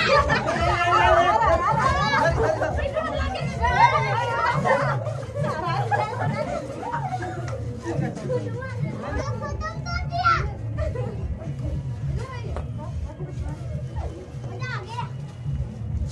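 Children shout and laugh excitedly nearby.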